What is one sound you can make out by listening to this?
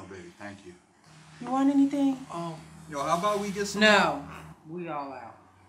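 A woman speaks with emotion nearby.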